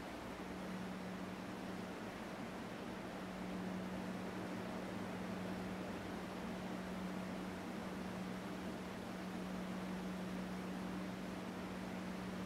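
A man hums a low, steady note close by.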